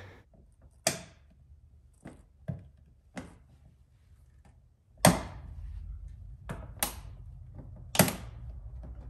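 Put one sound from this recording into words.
Hands press a plastic trim piece onto a car body with sharp clicks and taps.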